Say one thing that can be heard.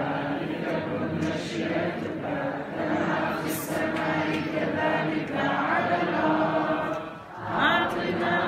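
A congregation of men and women sings together in a room with some echo.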